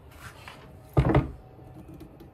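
A wooden board knocks against wood.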